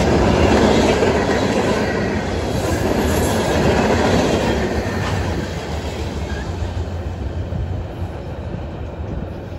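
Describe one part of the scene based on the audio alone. A freight train rumbles past close by, its wheels clattering on the rails, then fades into the distance.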